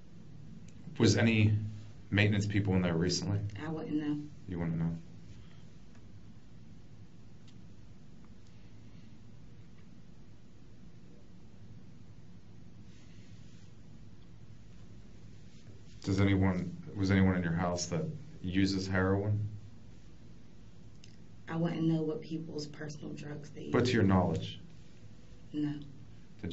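A man asks questions calmly, heard from a distance.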